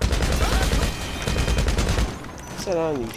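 A heavy gun fires in a rapid burst.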